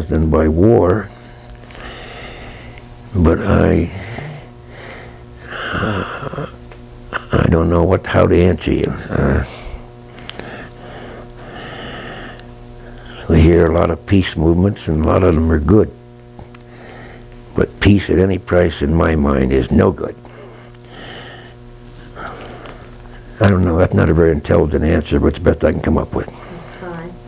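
An elderly man speaks calmly and close to a microphone, in bursts with pauses.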